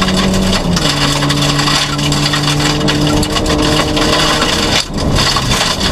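A rally car engine roars loudly from inside the cabin, revving up and down through the gears.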